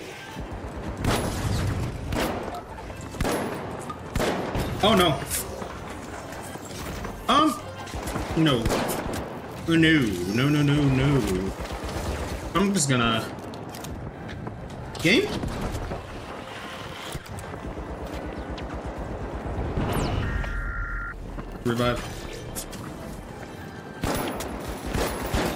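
Guns fire in rapid bursts of sharp shots.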